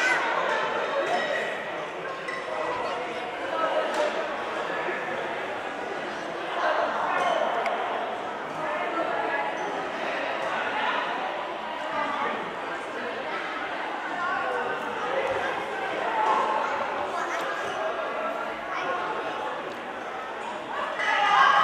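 A group of young women cheer and shout with excitement in a large echoing hall.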